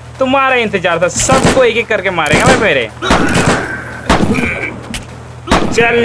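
Game weapons clash and hit during a fight.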